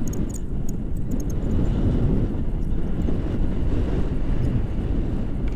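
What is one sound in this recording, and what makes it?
A young man talks close by, half drowned by the wind.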